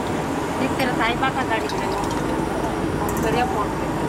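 A metal spoon clinks against a steel bowl.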